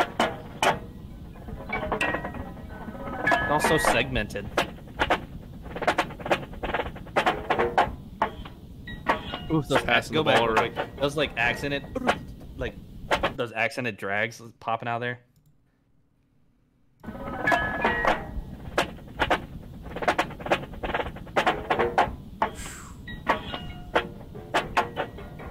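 A marching drumline beats out fast rhythms, heard through a recording.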